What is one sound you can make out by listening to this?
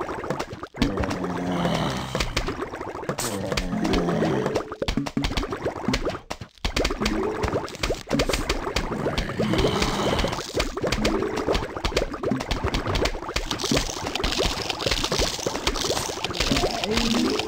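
Zombies groan and shuffle forward.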